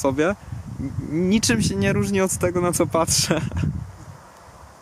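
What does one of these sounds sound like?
A young man laughs softly.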